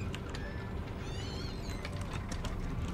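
A cabinet door creaks open.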